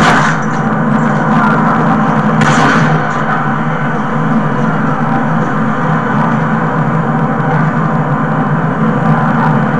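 A video game plays loud gunfire and explosions through a television speaker.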